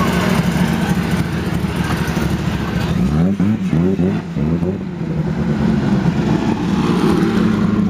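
A vintage racing car's engine roars loudly as it speeds past.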